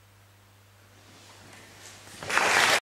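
An audience bursts into applause.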